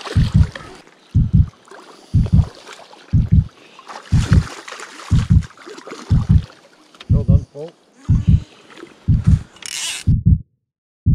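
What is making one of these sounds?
Shallow river water splashes around a wading man's legs and hands.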